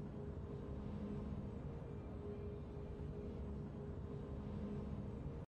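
Triumphant game music plays with steady, held low tones.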